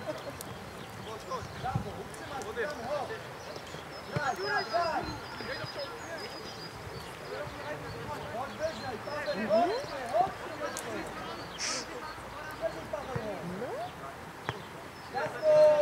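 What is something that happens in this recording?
Men shout to each other across an open outdoor field, some way off.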